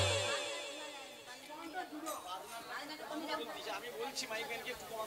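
A young girl sings through a microphone.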